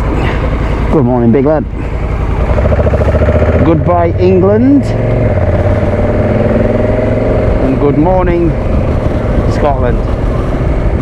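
A motorcycle engine revs up sharply several times as gears change.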